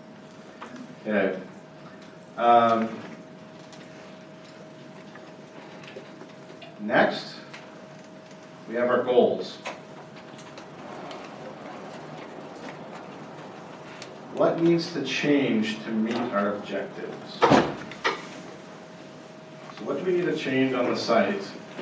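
A man speaks into a microphone over loudspeakers in a large room, pausing between phrases.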